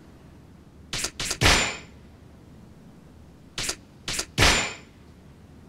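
Electronic menu clicks sound several times in quick bursts.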